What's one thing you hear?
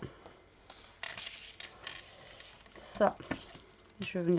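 Paper rustles and slides against paper.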